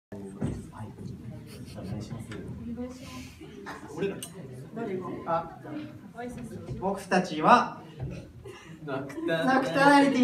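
Young men and women talk and laugh through microphones.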